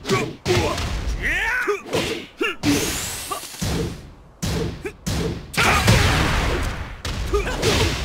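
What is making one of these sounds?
Punches and kicks land with heavy, sharp thuds in quick bursts.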